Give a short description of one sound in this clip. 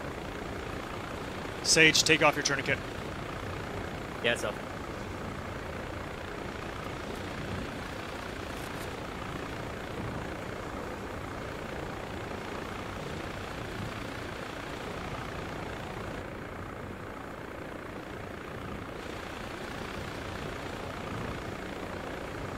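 A helicopter's rotor drones steadily throughout.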